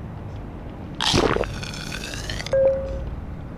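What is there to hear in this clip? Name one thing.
A game interface plays a bright shimmering chime.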